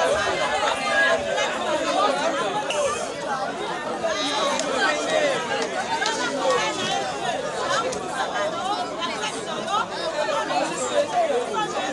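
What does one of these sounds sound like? A large crowd outdoors cheers and shouts loudly.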